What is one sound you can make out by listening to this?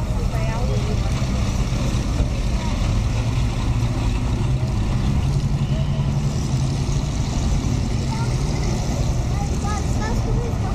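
An old car engine idles with a low, steady rumble.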